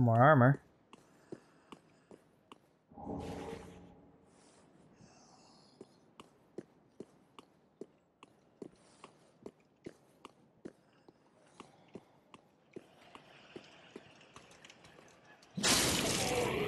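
Armoured footsteps clatter steadily on stone.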